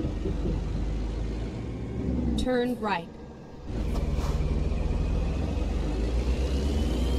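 A truck engine rumbles steadily, dropping away briefly.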